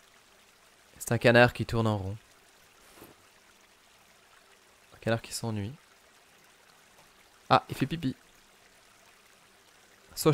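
A man talks with animation through a close microphone, in short bursts.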